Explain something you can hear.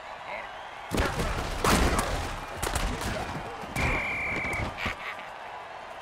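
Armoured players crash together with heavy thuds.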